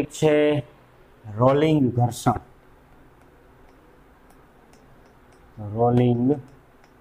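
A man speaks clearly and calmly into a microphone nearby.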